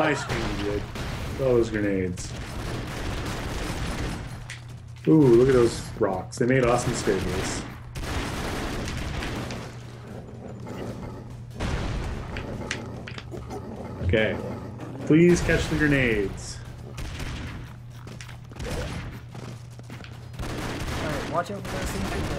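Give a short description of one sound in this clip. Gunfire crackles in rapid bursts from a game.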